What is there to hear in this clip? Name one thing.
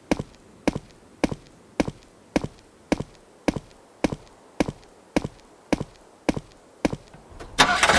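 Footsteps crunch steadily on the ground outdoors.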